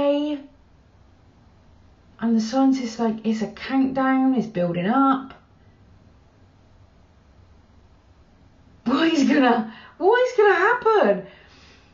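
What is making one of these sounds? A woman talks close up, calmly and with pauses.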